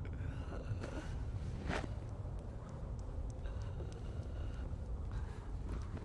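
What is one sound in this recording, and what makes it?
A man breathes heavily and sobs in distress.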